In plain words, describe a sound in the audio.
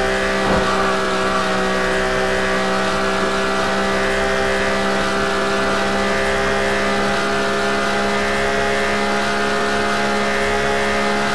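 A car engine hums steadily at high speed.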